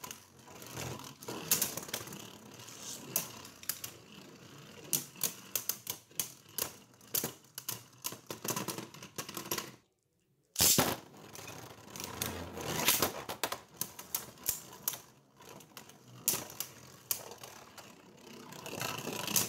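Spinning tops whir and clack against each other in a plastic arena.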